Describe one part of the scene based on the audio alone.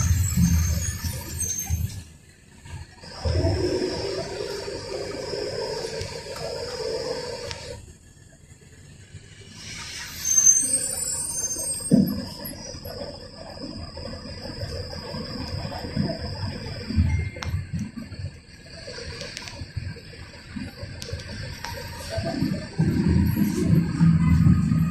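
A bus engine rumbles as the bus drives along.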